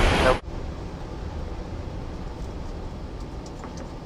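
Switches click on an overhead panel.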